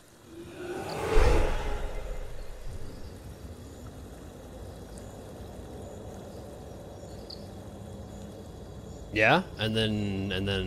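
Water rushes steadily nearby.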